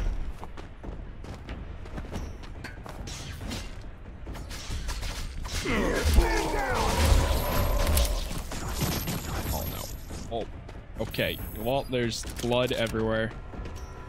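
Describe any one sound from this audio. Gunshots and blows crack repeatedly in a game fight.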